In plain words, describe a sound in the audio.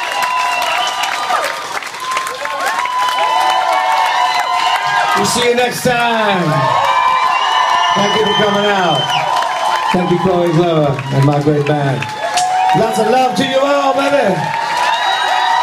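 A crowd cheers and whistles loudly in a large echoing room.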